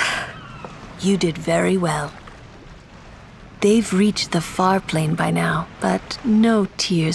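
A woman speaks calmly and warmly.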